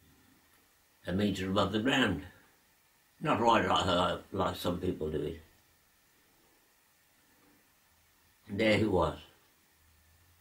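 An elderly man speaks calmly and slowly, close by, in short phrases with pauses.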